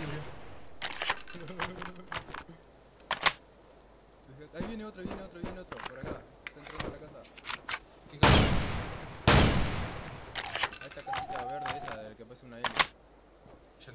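A shotgun is reloaded with metallic clicks.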